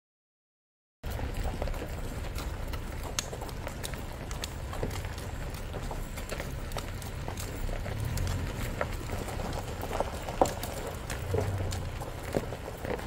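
Hooves thud and clop slowly on packed dirt outdoors.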